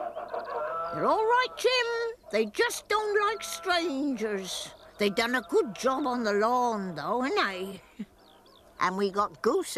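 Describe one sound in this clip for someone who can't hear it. An elderly woman talks with animation.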